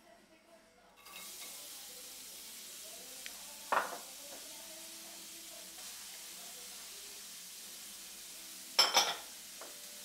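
Food sizzles in a hot pan.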